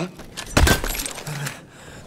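A rifle butt strikes a soldier with a heavy thud.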